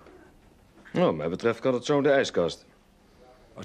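A second man answers calmly nearby.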